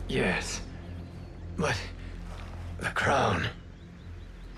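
A man speaks in a strained, shaken voice close by.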